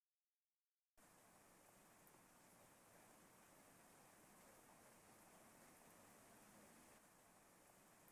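Steady rain falls and patters.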